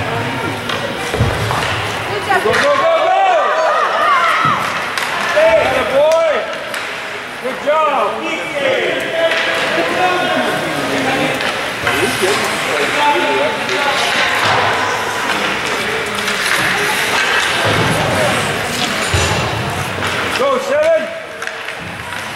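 Spectators shout and cheer loudly in an echoing rink.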